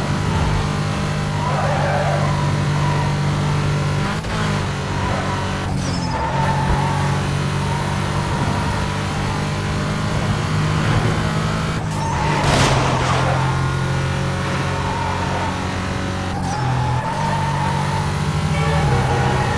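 A racing car engine roars at high speed, dipping briefly as gears shift.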